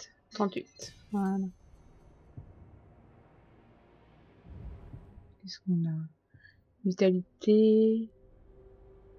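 Short chiming game menu tones sound as options are selected.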